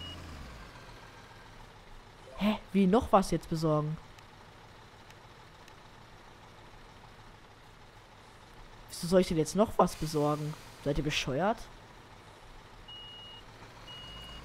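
A truck engine hums steadily as the truck drives slowly.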